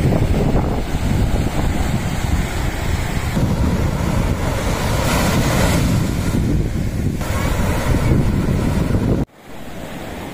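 Wind blows loudly outdoors.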